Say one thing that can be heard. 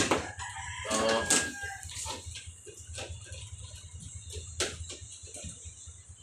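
Plastic fittings click and knock under a man's hands.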